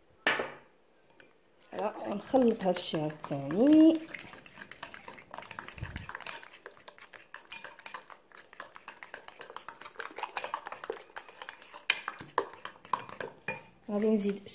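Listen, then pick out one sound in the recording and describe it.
A fork whisks batter in a bowl with quick scraping clicks.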